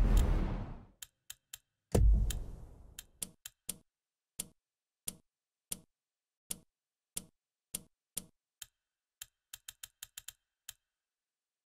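Menu clicks tick sharply as options are scrolled through.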